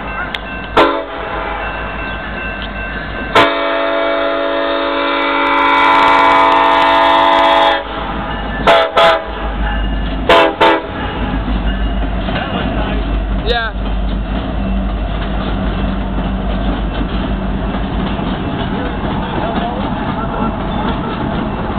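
A freight train rumbles and clatters past close by on the tracks.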